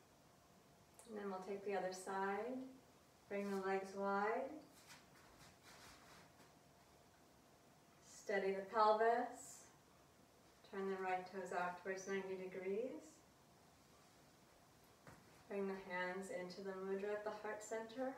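A woman speaks calmly and slowly close to a microphone, with pauses between phrases.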